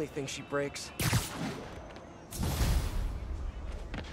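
A rope line whooshes through the air in quick swings.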